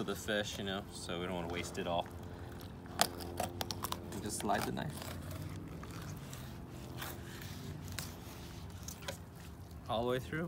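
A knife slices through fish with soft scraping and tapping.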